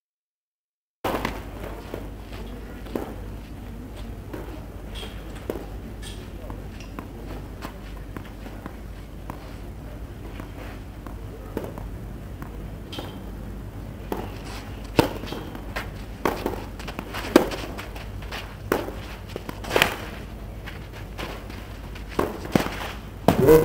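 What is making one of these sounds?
A tennis ball is struck hard by a racket with sharp pops, back and forth.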